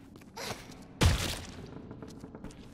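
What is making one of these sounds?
A brick lands with a loud thud and clatters on a hard floor.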